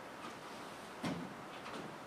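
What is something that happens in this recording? A man's foot thumps on a chair.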